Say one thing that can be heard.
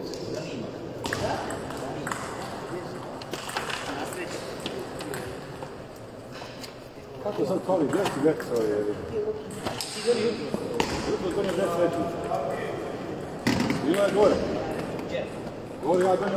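A ping-pong ball clicks back and forth on paddles and a table in a large echoing hall.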